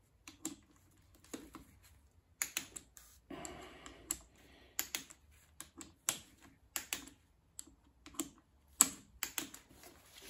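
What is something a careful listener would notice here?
A ratchet wrench clicks in quick bursts as a bolt is turned.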